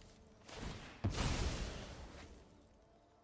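A magical blast whooshes and fades.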